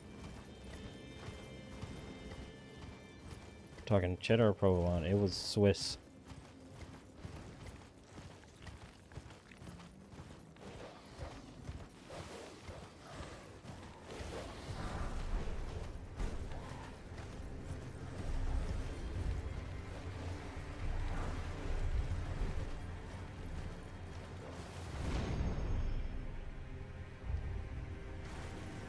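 A horse gallops with hooves thudding on snow.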